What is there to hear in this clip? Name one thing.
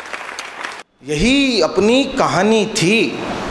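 A man recites with feeling into a microphone.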